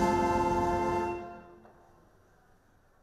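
A brass band plays a loud, sustained chord that rings out in a large hall and fades.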